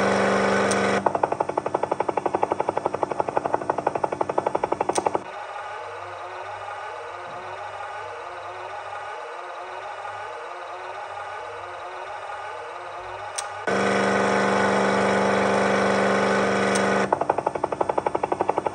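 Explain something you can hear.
Helicopter blades chop rapidly.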